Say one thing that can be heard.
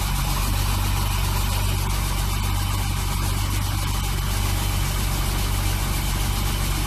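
A car engine idles with a steady, low hum.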